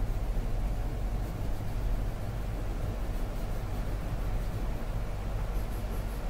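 A felt-tip marker rubs softly across paper.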